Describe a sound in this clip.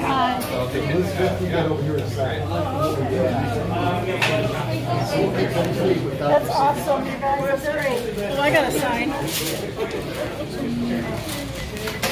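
An elderly man talks cheerfully nearby.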